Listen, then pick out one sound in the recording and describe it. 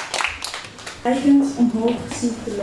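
A young woman speaks into a microphone over a loudspeaker.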